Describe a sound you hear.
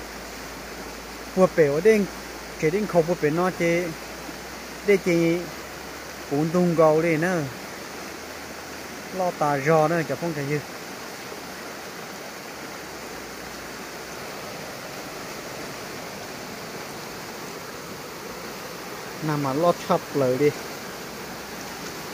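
A swollen river rushes over rocks.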